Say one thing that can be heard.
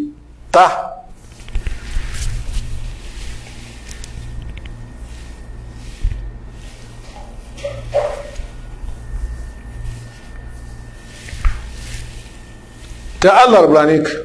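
Cloth rustles and rubs against a microphone.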